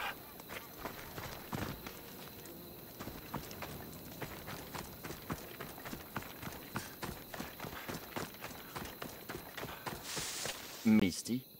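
Footsteps run quickly over dirt and gravel.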